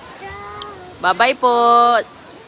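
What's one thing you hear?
A small child calls out in a high voice.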